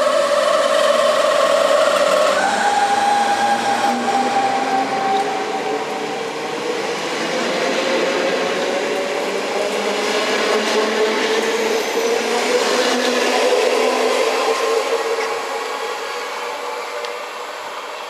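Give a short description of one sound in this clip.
An electric train pulls away close by, its motors whining and shifting in pitch as it picks up speed.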